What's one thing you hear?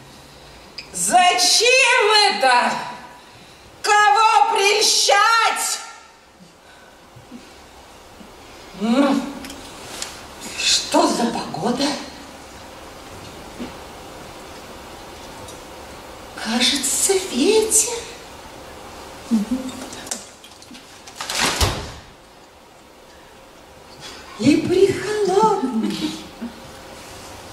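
A young woman speaks with dramatic feeling on a stage, with pauses.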